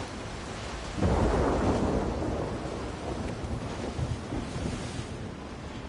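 A sheet of paper rustles in a hand.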